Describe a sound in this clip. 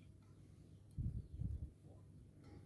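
A glass dish is set down with soft thuds.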